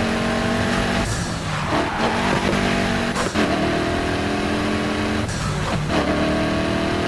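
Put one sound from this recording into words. Tyres screech as a car drifts around a bend.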